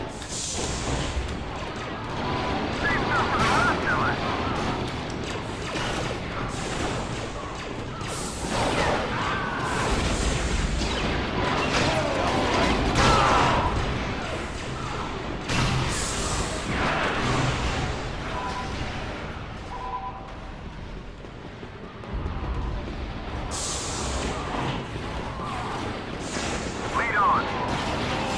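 Blaster rifles fire in rapid bursts.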